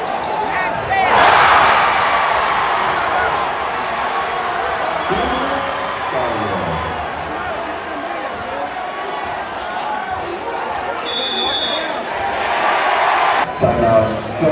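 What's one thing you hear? A crowd roars loudly.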